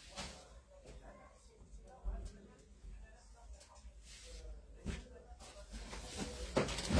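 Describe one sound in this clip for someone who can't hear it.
A towel rustles and flaps as it is lifted and moved.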